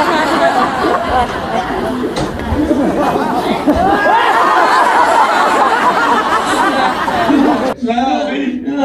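Several young men laugh and cheer loudly together.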